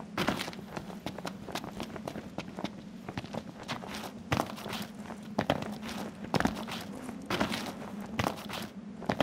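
Footsteps crunch quickly over rough rocky ground.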